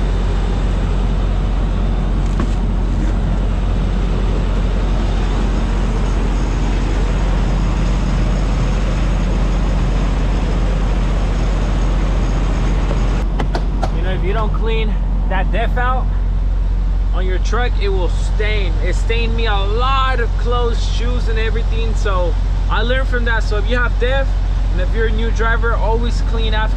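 A large engine idles with a steady low hum.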